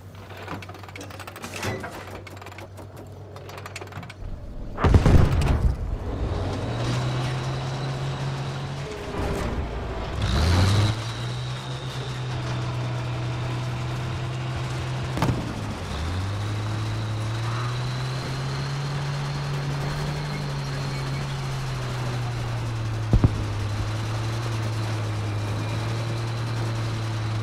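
A tank engine rumbles and whines steadily, rising and falling as the tank drives.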